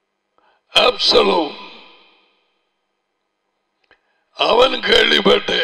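An elderly man speaks with animation into a headset microphone.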